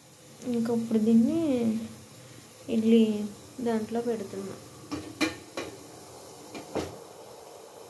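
A metal plate clinks against a metal pot.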